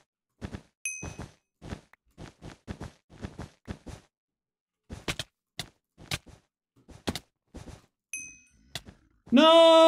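Blocks are placed with quick, sharp clicks.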